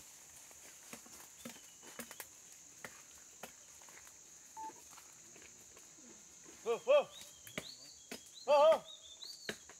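Twigs snap and leaves rustle as an elephant moves through dense brush.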